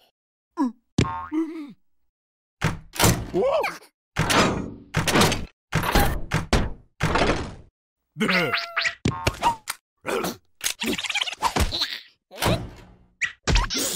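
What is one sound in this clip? A cartoon creature babbles and squeals in a high, excited voice.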